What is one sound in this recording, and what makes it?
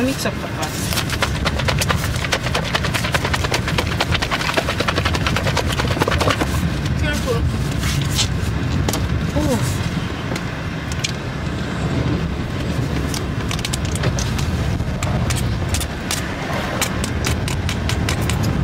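A plastic lid crinkles and crackles as a container is opened.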